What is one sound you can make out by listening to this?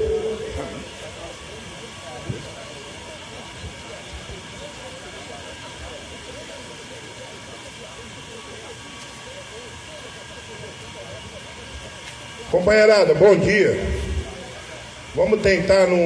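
A crowd murmurs in the distance.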